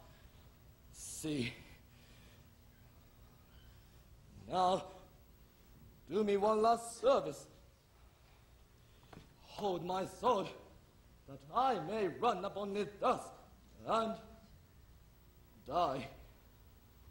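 A young man speaks loudly and dramatically.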